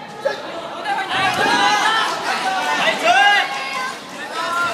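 Young men cheer and yell loudly.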